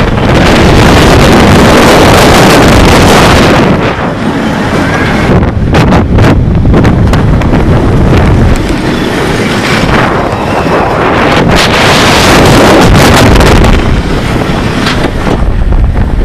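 A roller coaster train rattles and roars along its steel track.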